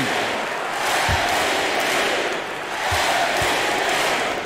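A basketball bounces on a hardwood floor with dull thuds.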